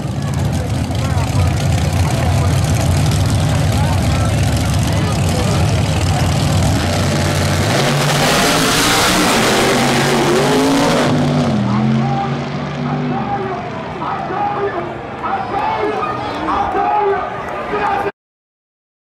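A crowd outdoors murmurs and cheers.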